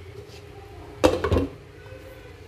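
A metal lid clatters onto a pot.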